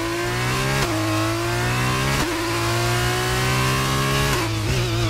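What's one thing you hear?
A racing car engine screams at high revs, dropping briefly with each gear shift before climbing again.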